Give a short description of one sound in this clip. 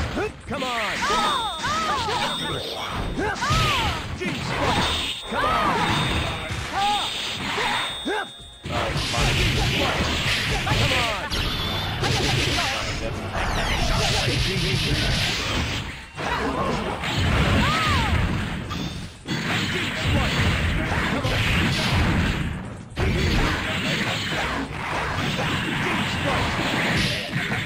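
Game characters shout battle cries.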